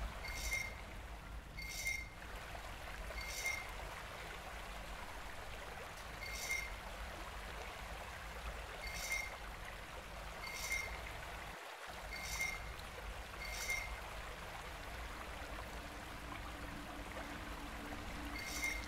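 Bright chimes ring each time a mask slides into place.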